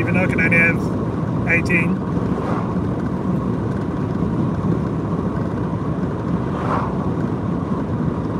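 An oncoming car passes by.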